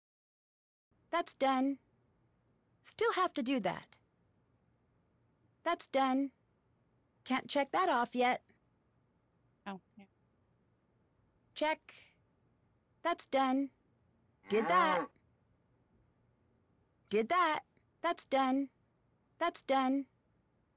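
A young woman speaks into a microphone in short, animated bursts.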